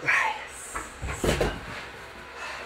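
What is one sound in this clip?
A climber drops from a wall and lands with a heavy thud on a mat.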